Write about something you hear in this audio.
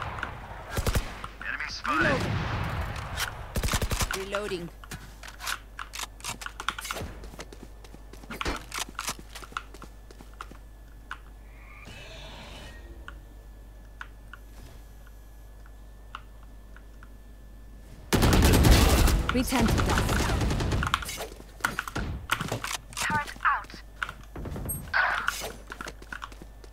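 Rapid gunshots crack in short bursts.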